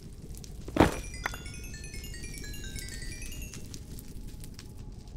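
Experience orbs chime in quick, rising tinkles.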